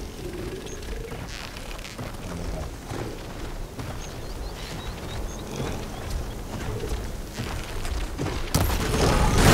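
A bowstring is drawn tight and creaks.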